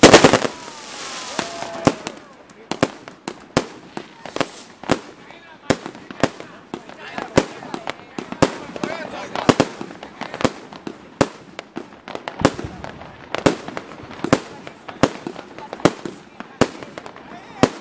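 Fireworks crackle and fizz after each burst.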